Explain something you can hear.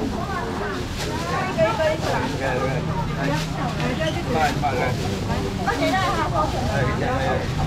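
Plastic bags rustle as they are handled.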